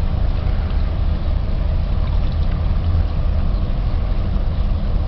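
Strong wind rumbles and buffets outdoors.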